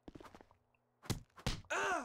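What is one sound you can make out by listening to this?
A blow lands with a sharp smack.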